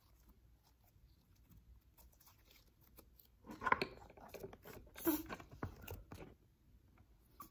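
A soft object rustles and squishes as hands handle it close up.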